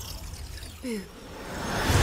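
A young woman speaks softly and close.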